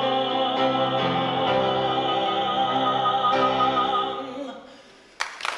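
A young man sings a long, loud note.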